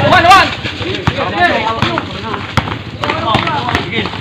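A basketball bounces on concrete.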